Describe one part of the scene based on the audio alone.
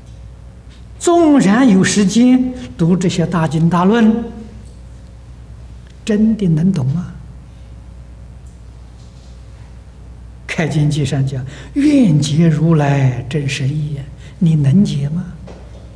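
An elderly man speaks into a microphone with animation, pausing between phrases.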